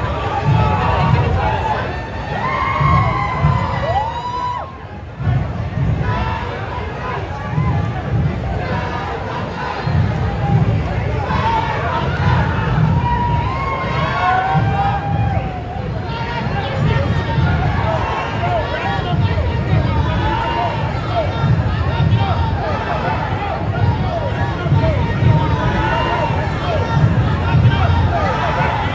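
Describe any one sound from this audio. A large crowd cheers and screams excitedly outdoors.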